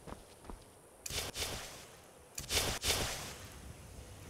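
A magic spell crackles and whooshes as it is readied.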